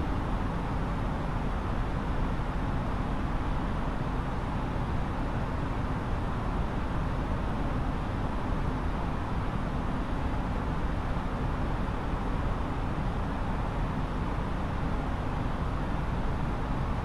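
Jet engines hum steadily with a low, constant rumble of air rushing past.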